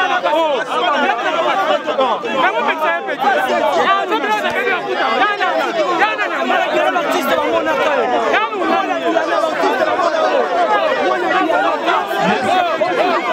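A large crowd of men and women talks and shouts all at once, close by.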